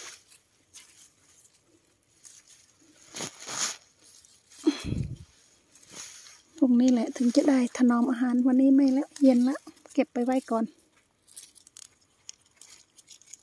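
Tomato stems snap and leaves rustle as tomatoes are picked by hand.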